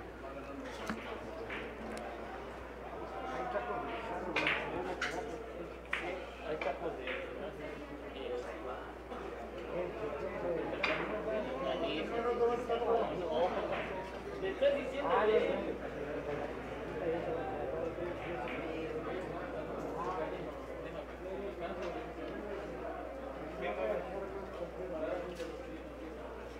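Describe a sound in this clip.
Men murmur and chat quietly nearby.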